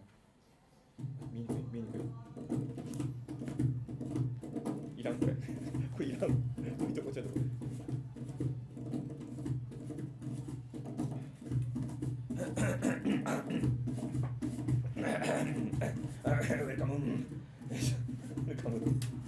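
A cajon is tapped in a steady beat.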